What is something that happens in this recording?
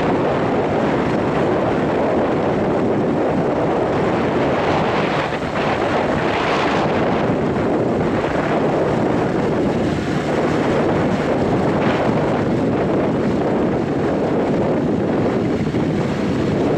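A tractor engine runs with a loud steady rumble.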